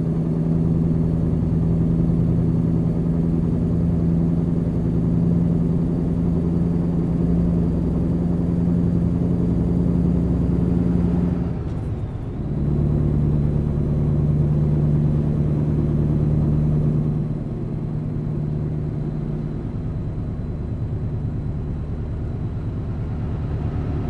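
A truck engine drones steadily as it drives along a highway, dipping briefly as the gears shift.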